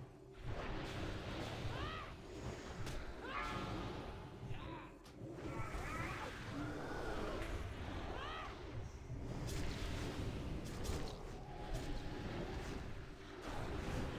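A dragon breathes roaring fire.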